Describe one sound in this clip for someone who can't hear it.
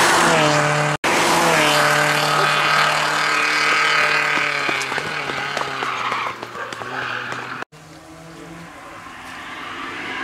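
A car engine whines and revs as it approaches up a road.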